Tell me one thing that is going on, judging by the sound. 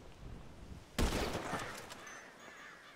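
A rifle fires a single loud shot that echoes away.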